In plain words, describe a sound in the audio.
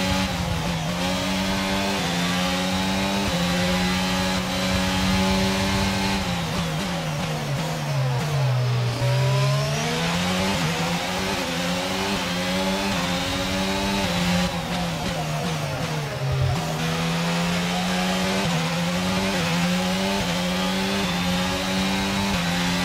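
A racing car engine screams at high revs, shifting up through the gears.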